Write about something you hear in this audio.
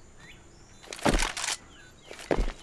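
A sniper rifle fires a loud, echoing shot.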